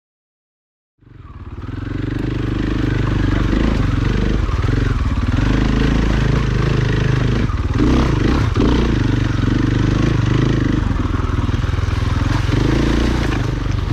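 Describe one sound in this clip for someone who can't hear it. A dirt bike engine revs and chugs loudly up close.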